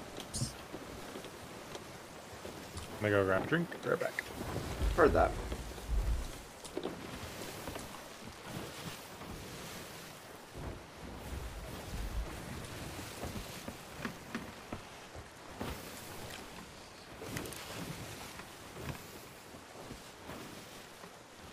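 Ocean waves wash and churn steadily.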